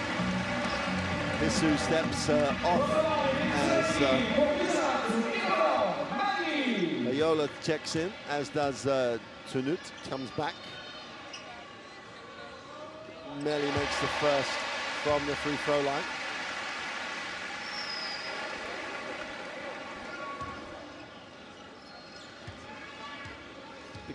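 A large crowd roars and chants in an echoing arena.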